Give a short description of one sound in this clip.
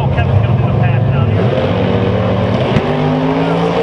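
Powerful race car engines rumble loudly.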